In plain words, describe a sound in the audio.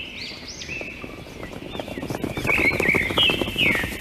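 Waves break and wash onto a shore.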